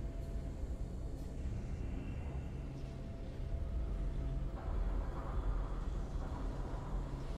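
A deep rumbling blast rolls on steadily.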